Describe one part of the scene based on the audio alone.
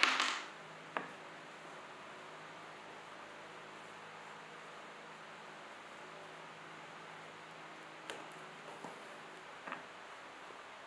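A clay bowl knocks softly as it is set down on a wooden board.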